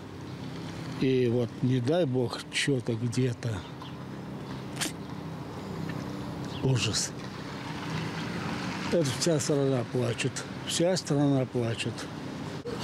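An elderly man speaks with animation into a close microphone, outdoors.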